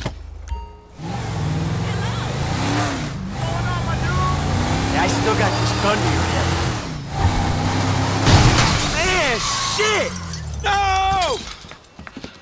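A car engine roars as a car speeds along.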